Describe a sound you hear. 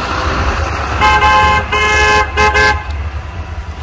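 A pickup truck honks its horn in short blasts.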